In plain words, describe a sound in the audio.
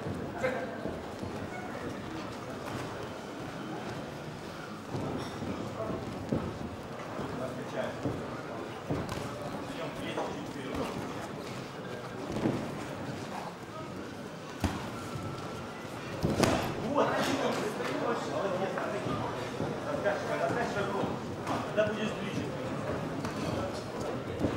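A crowd murmurs and shouts throughout a large hall.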